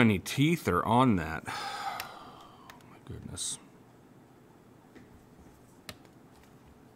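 Small plastic parts click in a man's fingers.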